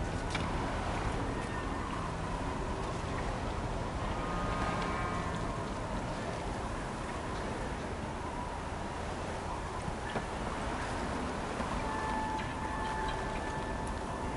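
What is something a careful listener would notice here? Footsteps scrape over rock and snow.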